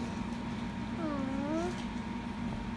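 A small dog lets out a short, wavering whine close by.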